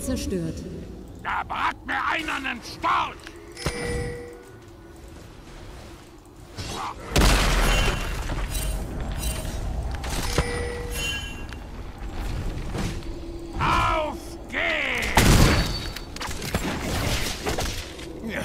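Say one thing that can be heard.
Game spells whoosh and crackle in bursts.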